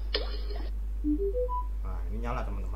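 A small speaker plays a short rising chime of four beeps.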